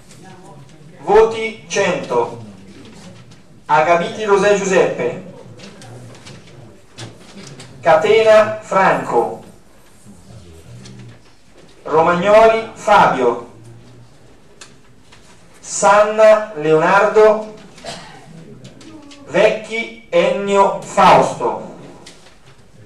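A man speaks into a microphone in bursts, with pauses between phrases, in a room with some echo.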